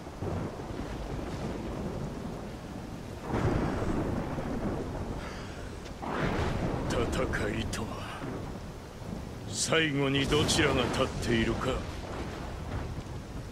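A fire roars and crackles steadily.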